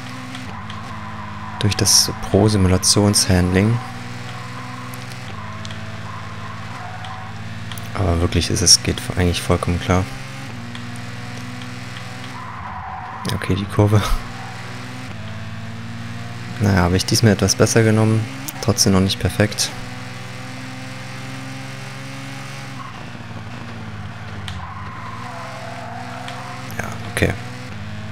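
A racing car engine drones steadily, its pitch rising and dropping as it shifts gears.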